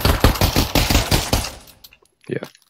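Suppressed pistol shots fire in quick bursts.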